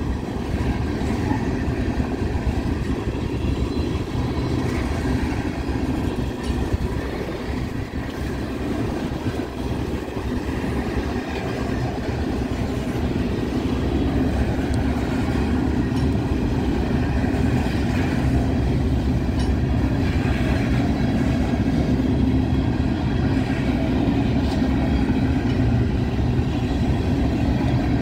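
Steel wheels clack rhythmically over rail joints.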